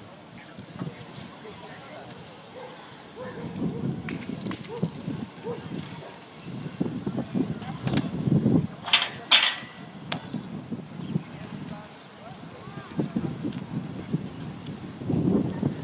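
Spectators chatter and call out outdoors at a distance.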